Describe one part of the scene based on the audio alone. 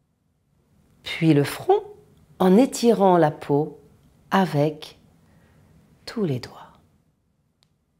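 A young woman speaks calmly and slowly, close to a microphone.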